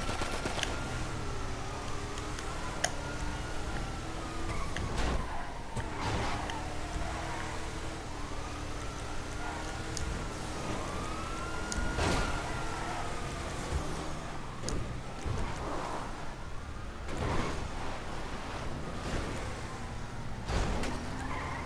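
A car engine roars as a vehicle speeds along.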